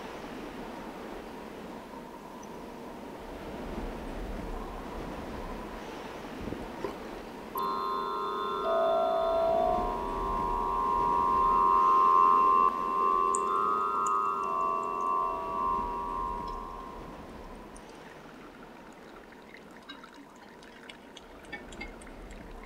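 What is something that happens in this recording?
Water pours from a hose into a tub.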